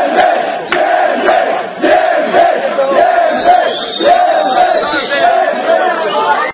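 A large crowd of men and women chant and shout loudly close by, outdoors.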